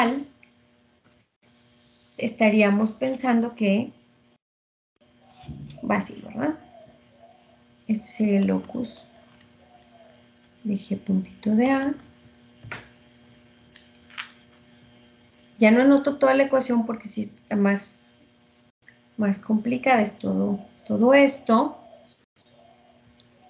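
A woman speaks calmly and explains, heard through an online call.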